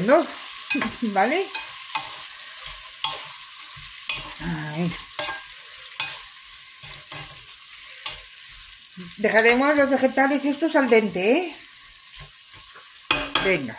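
A wooden spoon scrapes and stirs vegetables in a pan.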